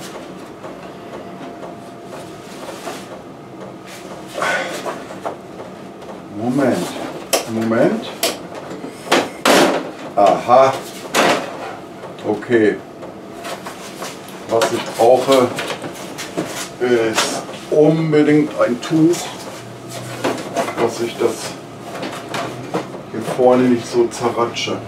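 Plastic panels click and knock as a man handles a scooter front.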